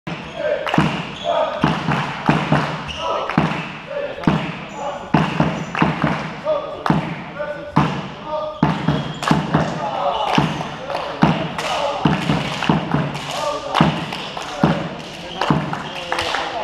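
A volleyball thumps as players hit it, echoing in a large hall.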